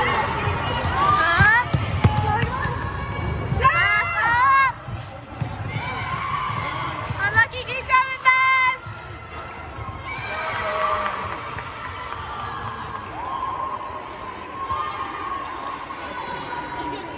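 Girls shout and call out to each other in a large echoing hall.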